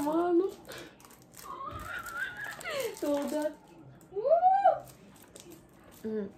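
Cardboard packaging rustles in a young woman's hands.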